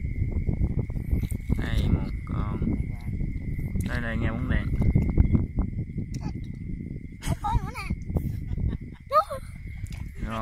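Water splashes and sloshes as feet wade through shallow water.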